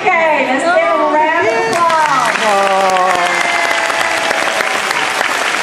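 Young children sing together in a large echoing hall.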